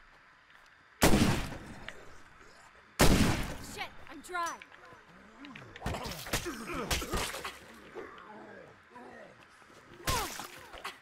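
A gun fires loud single shots that echo and fade.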